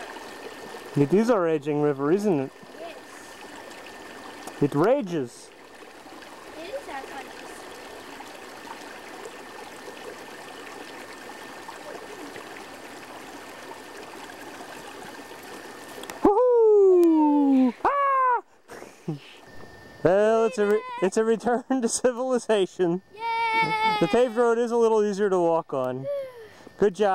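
A young girl talks and calls out with animation close by.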